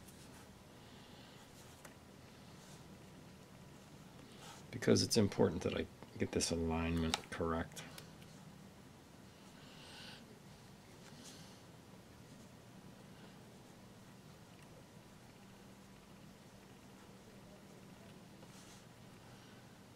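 A small tool scrapes softly against paper.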